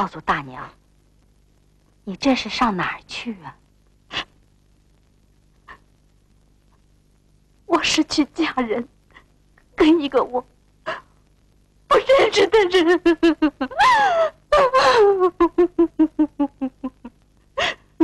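A young woman sobs and cries out in distress.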